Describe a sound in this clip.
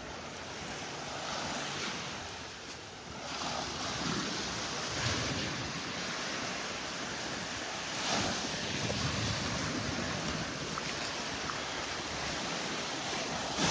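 Gentle waves wash and break softly on a shore.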